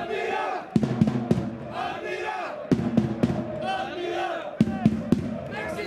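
A crowd of men cheer and chatter outdoors.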